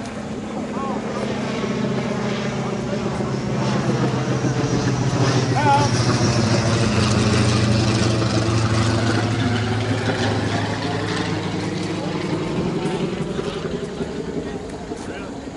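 A crowd of players and spectators cheers and calls out.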